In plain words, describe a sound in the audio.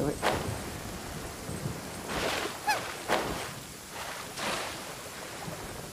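A character splashes through water.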